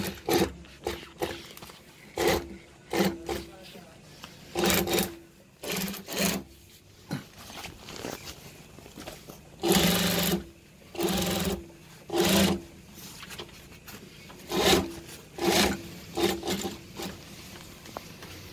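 A sewing machine runs in short, loud bursts, stopping and starting.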